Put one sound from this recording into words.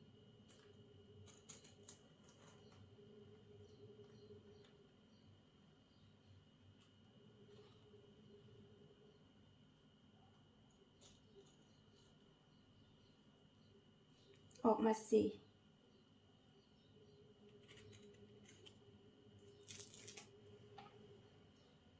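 A knife cuts softly through fruit on a wooden board.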